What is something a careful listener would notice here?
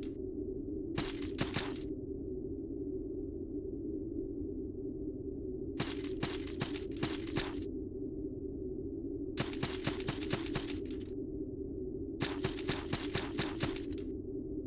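Footsteps patter in quick bursts across a hard floor.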